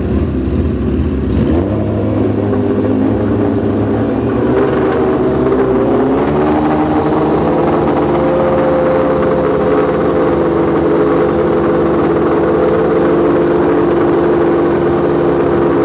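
A motorcycle engine revs loudly.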